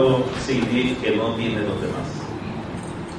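A middle-aged man speaks through a microphone with animation in a large echoing hall.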